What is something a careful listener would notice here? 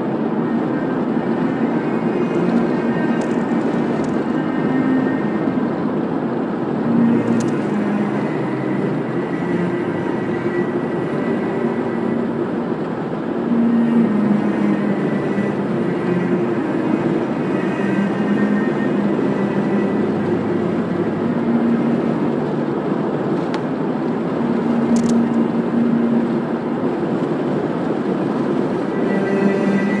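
A car drives steadily along a smooth road, its engine and tyres humming from inside.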